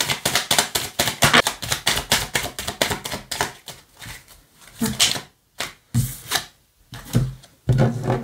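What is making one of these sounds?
Playing cards shuffle and tap on a wooden table.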